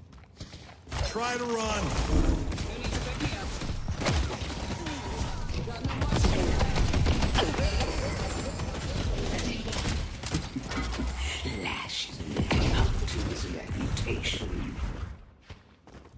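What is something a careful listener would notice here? Gunfire and energy blasts crackle in a fast game fight.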